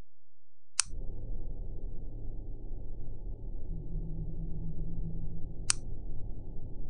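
A machine engine rumbles low and steady.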